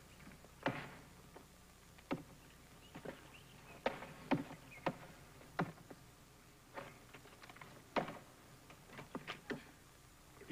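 An axe splits wood with sharp, repeated chops.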